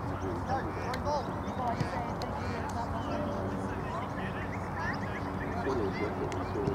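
Young girls call out to each other across an open field outdoors.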